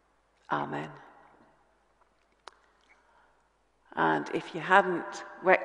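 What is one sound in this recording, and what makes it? A middle-aged woman speaks calmly into a microphone in an echoing room.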